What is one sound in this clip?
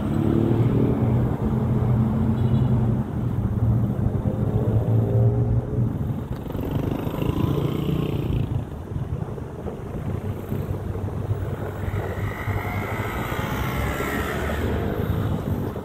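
Car engines hum and tyres roll past on a road.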